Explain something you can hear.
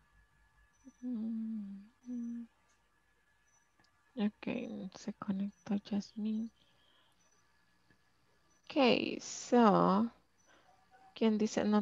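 A woman speaks with animation over an online call.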